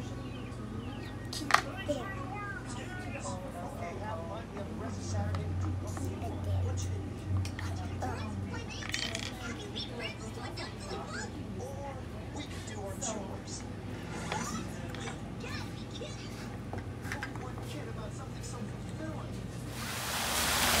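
A young girl talks quietly close by.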